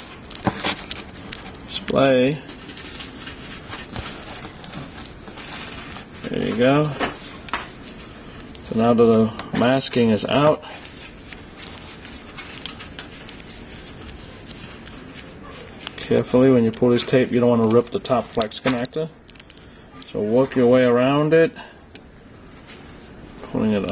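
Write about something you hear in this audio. Plastic film crinkles and peels under fingers.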